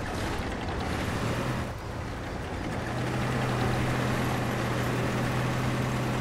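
A tank engine rumbles and drones steadily.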